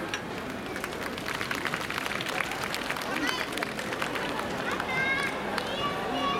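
Dancers' wooden clappers clack in quick bursts.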